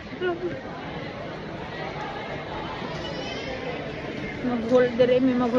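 A crowd murmurs in a busy indoor space.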